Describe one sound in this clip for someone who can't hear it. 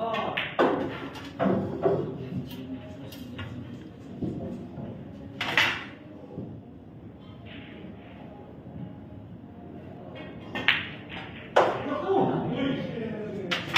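Pool balls knock together and roll across the table.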